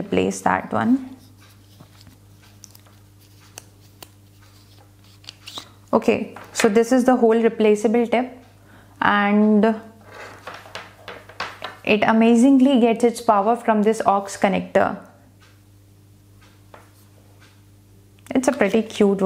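A young woman speaks calmly and close into a clip-on microphone.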